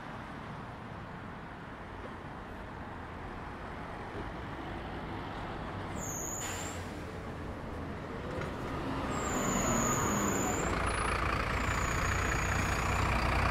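Outdoor traffic hums steadily in the background.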